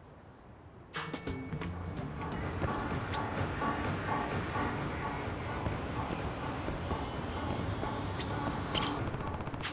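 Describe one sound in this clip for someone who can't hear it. Footsteps tap on pavement.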